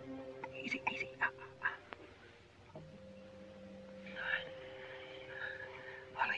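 An elderly man groans weakly.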